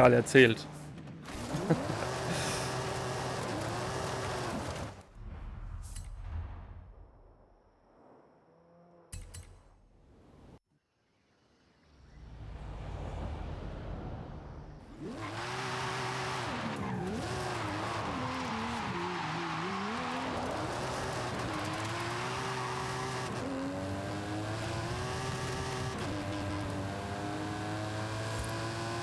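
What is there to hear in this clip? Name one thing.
A game car engine revs and roars, shifting through gears.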